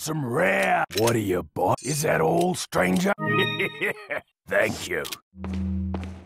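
Menu chimes and beeps ring out in quick succession.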